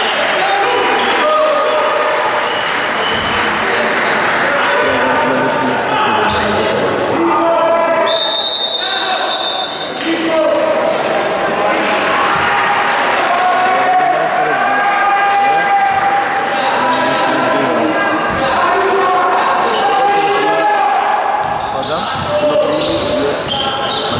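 A crowd of spectators chatters and calls out in an echoing gym.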